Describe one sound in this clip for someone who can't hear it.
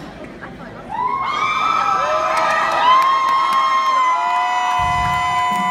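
A drum kit plays a beat.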